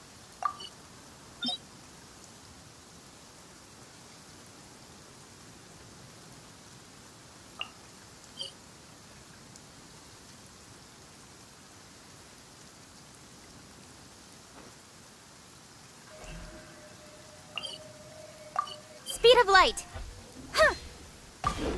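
Soft chiming clicks sound as menu items are selected.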